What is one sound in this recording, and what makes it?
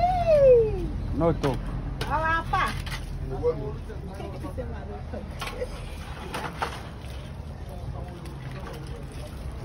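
Water sloshes in a basin as dishes are washed.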